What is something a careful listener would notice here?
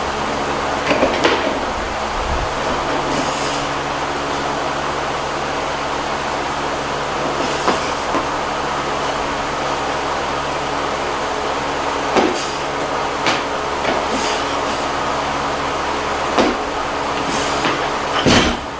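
Bumper plates clank on a loaded barbell during a heavy lift.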